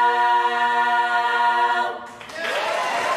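A women's choir sings a sustained chord in a large hall.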